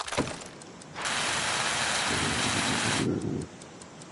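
A welding torch hisses and crackles steadily.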